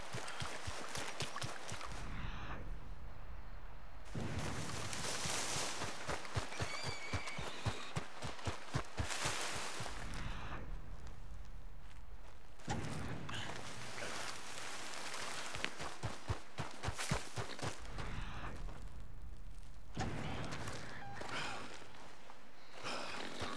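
Footsteps swish steadily through tall grass.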